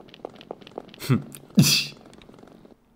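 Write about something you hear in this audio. A young man speaks close to a microphone.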